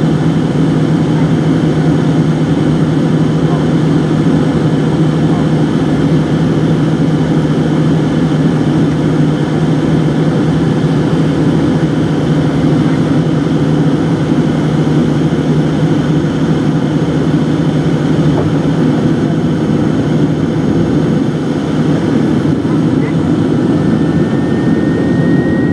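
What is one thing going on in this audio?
A jet engine roars steadily close by, heard from inside an aircraft cabin.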